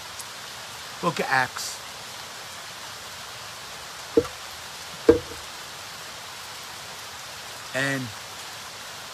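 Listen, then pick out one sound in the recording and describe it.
A man speaks a few short words close by.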